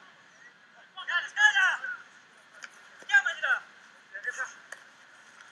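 Rugby players shout calls to each other across an open outdoor pitch.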